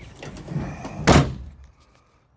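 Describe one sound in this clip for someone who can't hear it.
A hand thumps on a pickup truck's bed cover.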